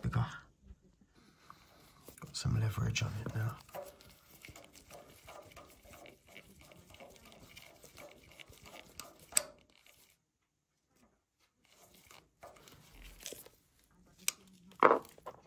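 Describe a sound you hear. A screwdriver scrapes and clicks against a metal screw.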